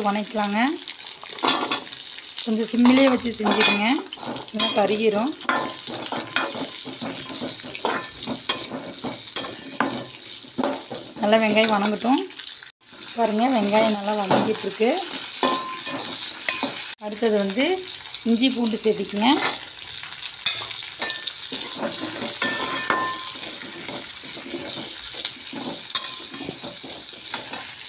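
Onions sizzle in hot oil.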